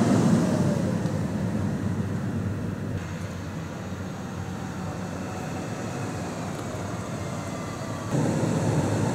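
A large motorhome engine rumbles as it drives past close by.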